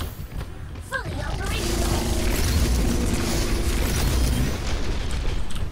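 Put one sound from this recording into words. Rapid gunfire blasts close by.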